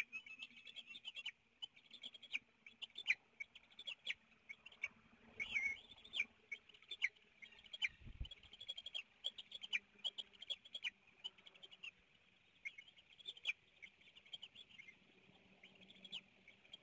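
Eagles give high, rapid chirping calls close by, over and over.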